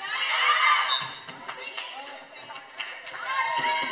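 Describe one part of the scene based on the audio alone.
A volleyball is struck with a hollow slap.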